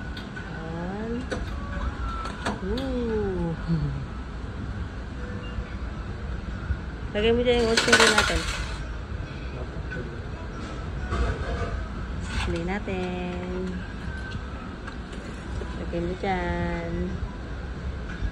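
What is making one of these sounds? A ticket machine plays short electronic chimes and prompts.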